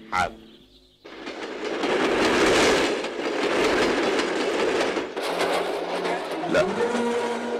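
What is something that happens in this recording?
A train rumbles past very close by.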